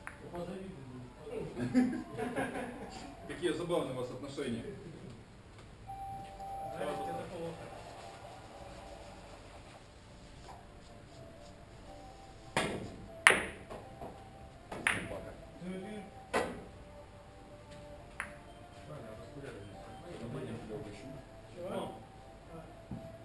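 Men talk in the background.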